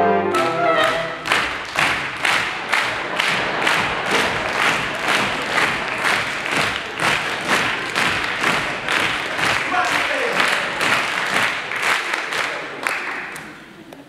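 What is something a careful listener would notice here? A group of people claps together in a steady, quick rhythm in a large echoing hall.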